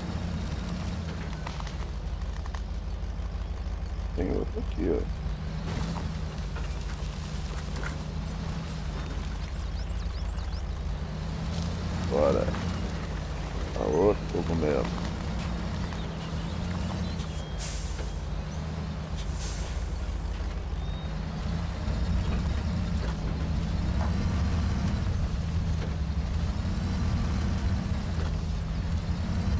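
A heavy truck's diesel engine rumbles steadily as it drives.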